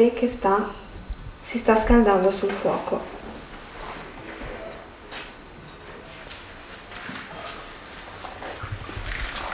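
A knife cuts on a plate.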